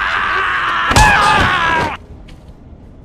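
A heavy punch lands with a thud.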